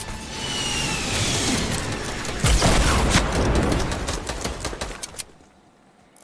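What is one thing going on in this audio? Wooden walls and ramps snap quickly into place.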